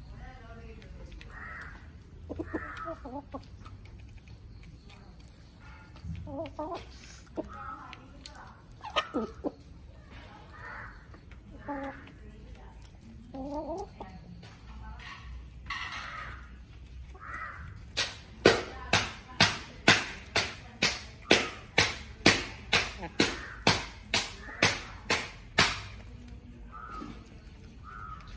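Hens cluck and call softly nearby.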